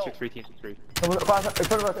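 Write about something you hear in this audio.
A rifle fires a burst of loud shots.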